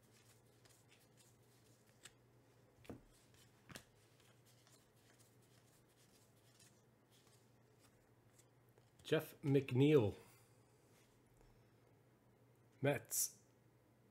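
Trading cards softly rustle and slide as hands flip through a stack.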